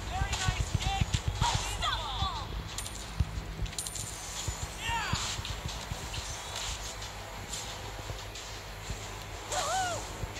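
Game skill effects whoosh and clash.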